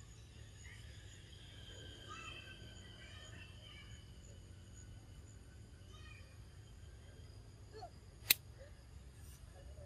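A monkey chews food softly.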